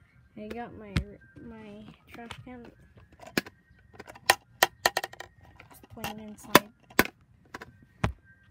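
A plastic container clacks and knocks against something hard.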